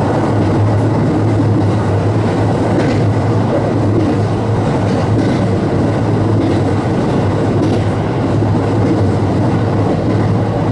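A diesel railcar engine drones as the train runs along the track.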